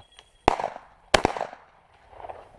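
A shotgun fires two loud shots that echo outdoors.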